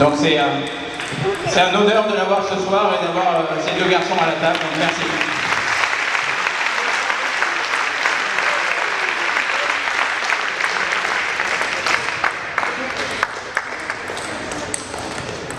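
A ping-pong ball clicks back and forth on a table and paddles in a large echoing hall.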